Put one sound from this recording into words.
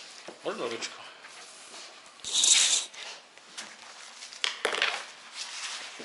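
Paper rustles on a table.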